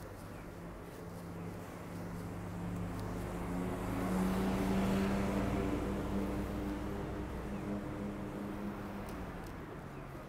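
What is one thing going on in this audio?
A car engine hums nearby.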